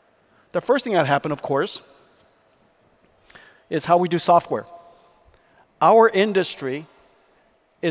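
A man speaks calmly into a microphone, echoing slightly in a large hall.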